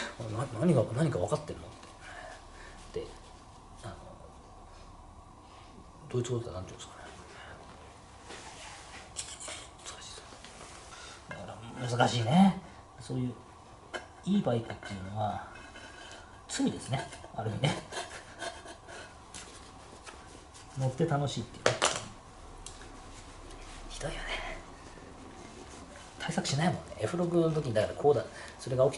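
A middle-aged man talks close by, calmly and in bursts.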